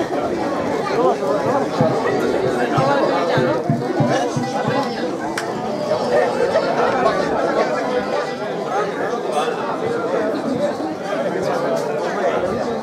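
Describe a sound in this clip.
An accordion plays along.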